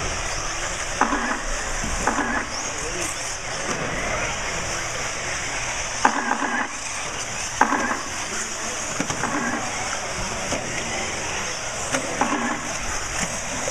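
Model car motors rev up sharply in short bursts.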